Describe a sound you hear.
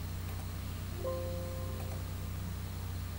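A computer alert chime sounds once.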